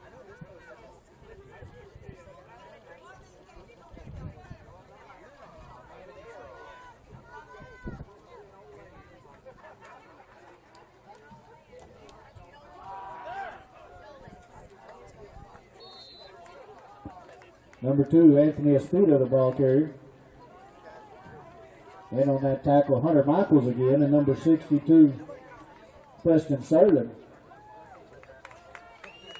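A crowd of spectators chatters faintly at a distance outdoors.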